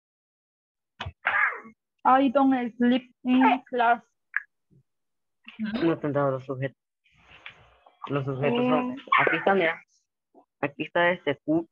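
A woman speaks and explains, as a teacher does, over an online call.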